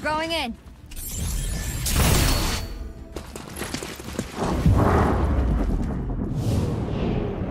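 Gunfire bursts from a game, with loud booms.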